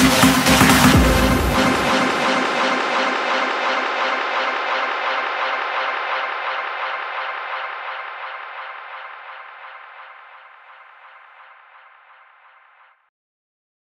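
Loud electronic dance music plays outdoors and slowly fades away.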